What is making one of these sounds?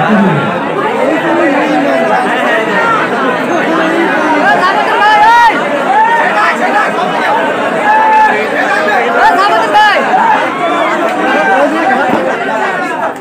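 A crowd of spectators chatters and shouts loudly outdoors.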